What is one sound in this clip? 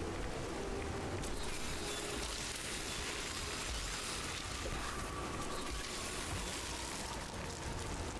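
A young man talks through a microphone.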